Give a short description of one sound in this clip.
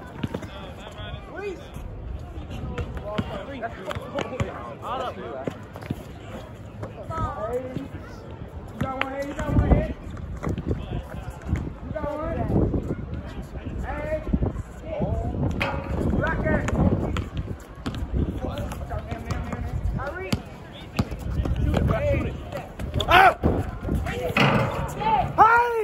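Young men call out and chatter nearby outdoors.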